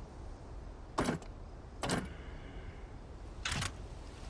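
A heavy metal plate clunks as it turns in place.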